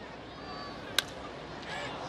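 A baseball smacks into a catcher's mitt with a sharp pop.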